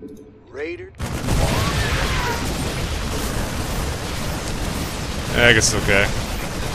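Rapid gunfire and blasts rattle in a noisy battle.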